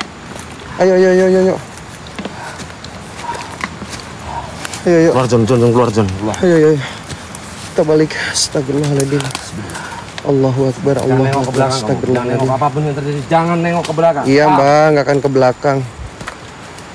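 A man speaks loudly and excitedly close by.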